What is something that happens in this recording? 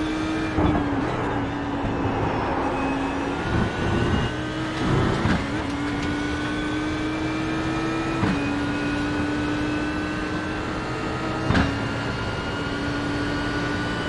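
A racing car engine roars steadily, its pitch climbing slowly and dropping at each gear change.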